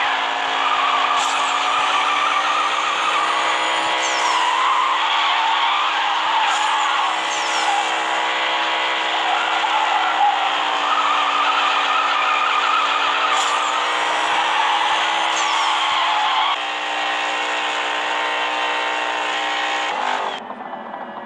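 A racing car engine roars loudly at high speed.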